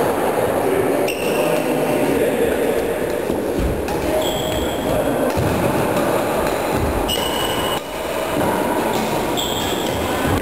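Badminton rackets strike a shuttlecock in an echoing hall.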